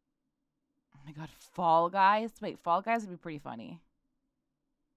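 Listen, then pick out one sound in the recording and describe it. A young woman speaks playfully through a microphone.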